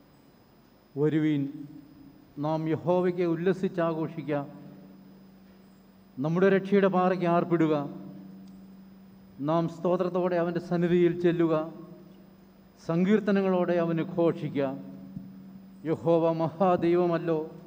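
An elderly man chants slowly through a microphone in an echoing hall.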